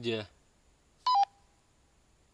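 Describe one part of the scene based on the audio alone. A walkie-talkie beeps briefly.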